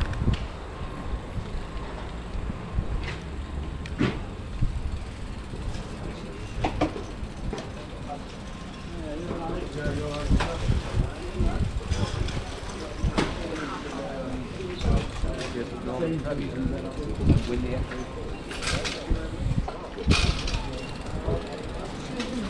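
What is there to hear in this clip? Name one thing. Tyres roll and bump over paving stones.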